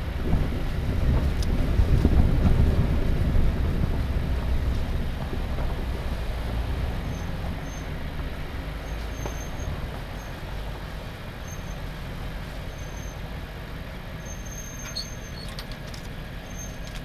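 Tyres crunch over dirt and rocks.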